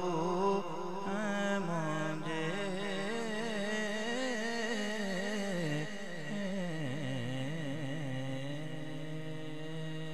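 A young man chants melodiously into a microphone, heard through loudspeakers with echo.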